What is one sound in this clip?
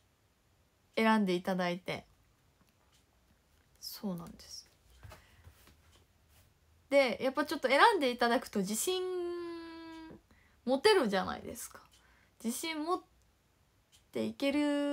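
A young woman talks expressively and close by, in short bursts with pauses.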